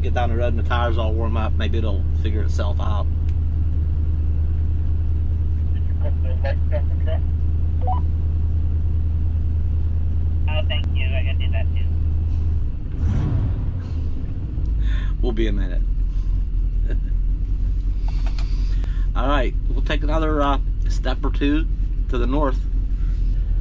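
A middle-aged man talks into a handheld radio microphone in short, lively bursts.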